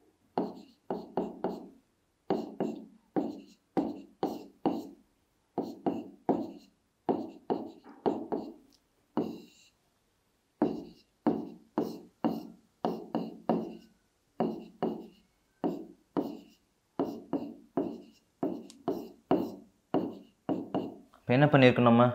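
A man speaks calmly and steadily through a close microphone.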